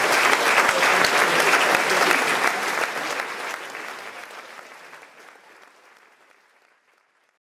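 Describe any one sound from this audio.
An audience applauds loudly in a large hall and the applause fades away.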